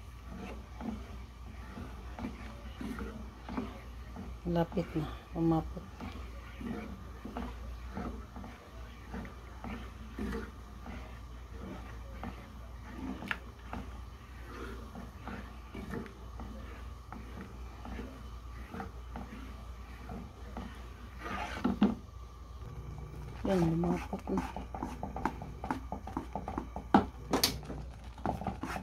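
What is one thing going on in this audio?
A wooden spoon stirs and scrapes against a pan.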